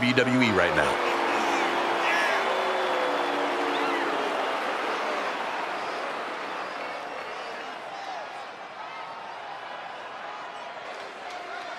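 A large crowd cheers in an echoing arena.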